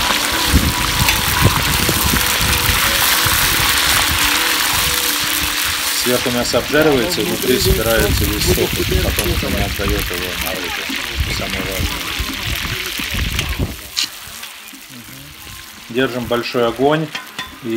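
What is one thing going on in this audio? A metal ladle scrapes and clanks against a pot.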